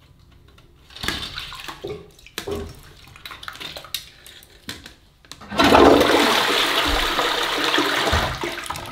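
Water splashes and sloshes in a toilet bowl.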